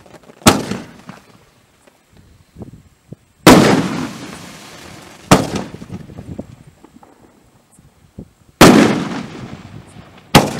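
Sparks crackle and fizzle after each burst.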